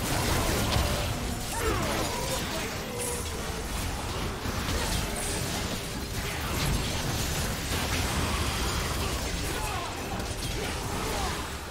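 Game spells burst and crackle in rapid, overlapping blasts.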